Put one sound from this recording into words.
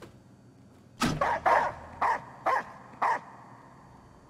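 A young man shouts into a microphone up close.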